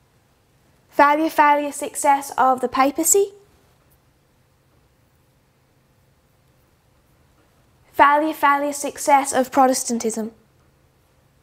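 A young woman speaks calmly into a close microphone, in short phrases with pauses.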